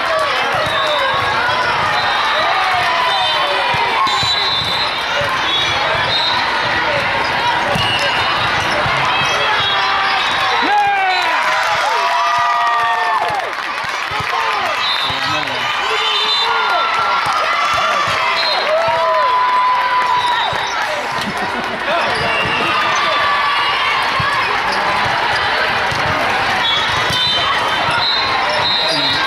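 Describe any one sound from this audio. A crowd of spectators and players chatters and cheers in a large echoing hall.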